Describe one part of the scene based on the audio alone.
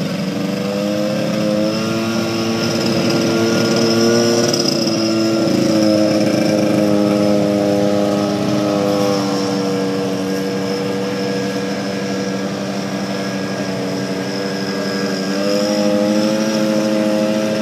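A hovercraft engine drones steadily nearby, its pitch rising and falling.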